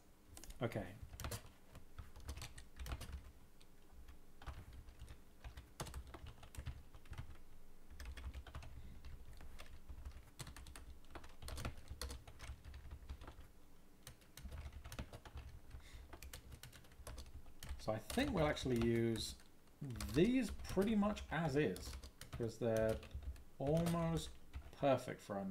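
Keys click rapidly on a keyboard.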